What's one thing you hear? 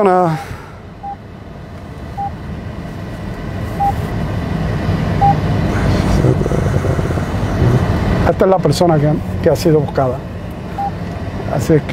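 A small electronic device beeps several times.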